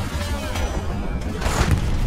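An explosion bursts close by with a deep boom.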